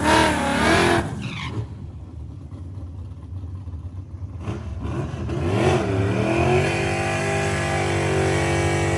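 A car engine roars and revs loudly, then rises in pitch as the car accelerates away.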